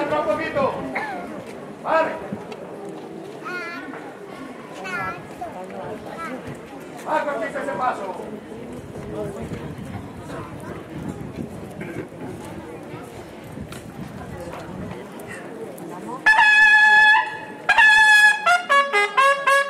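A crowd of people murmurs and talks nearby.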